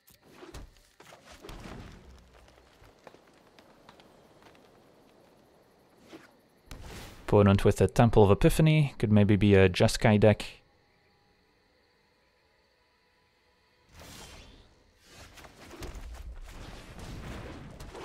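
A magical whoosh sounds as a card is played.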